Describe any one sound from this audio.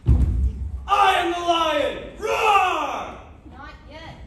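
A teenage girl shouts dramatically in an echoing hall.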